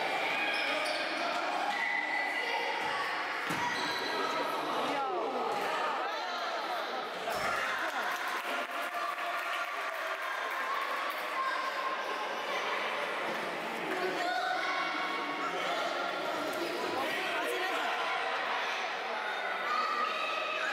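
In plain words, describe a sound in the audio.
A futsal ball is kicked and bounces on a hard indoor court.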